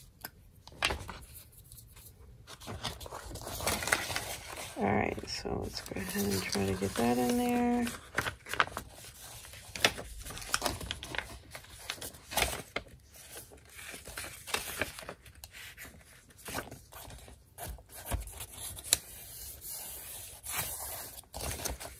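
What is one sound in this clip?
Paper rustles and crinkles as it is handled and folded.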